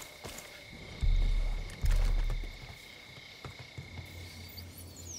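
Boots clank on metal ladder rungs.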